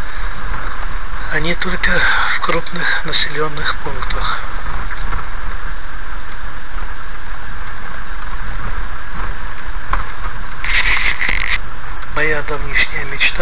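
A car engine rumbles low and steady while driving slowly.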